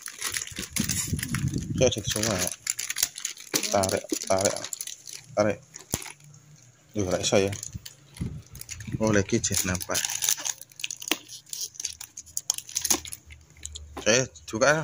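Stiff plastic packaging crinkles and rustles as hands handle a boxed toy.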